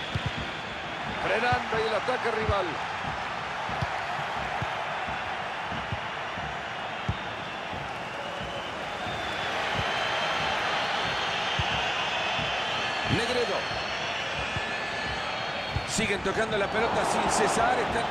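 A large stadium crowd roars and murmurs.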